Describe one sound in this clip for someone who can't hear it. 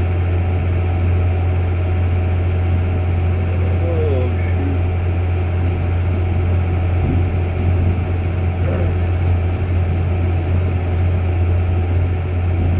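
Tyres rumble over rough crop stubble.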